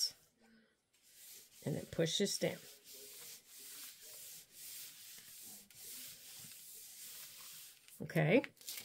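Paper rustles softly as hands smooth and fold it.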